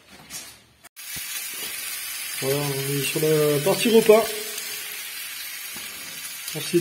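Sausages sizzle in a frying pan.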